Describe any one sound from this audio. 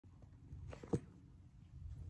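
A soft knock sounds as a phone is handled close by.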